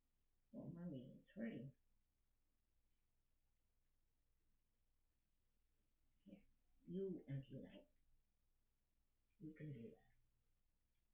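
A woman speaks softly and close by in short bursts.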